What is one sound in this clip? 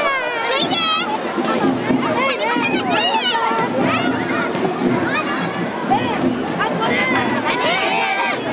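Many children shout and chatter excitedly nearby.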